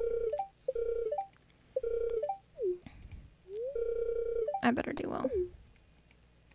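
Short chiming game tones play in quick bursts.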